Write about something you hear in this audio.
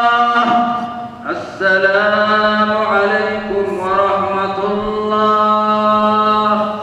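A man chants in long, drawn-out tones through a loudspeaker in a large echoing hall.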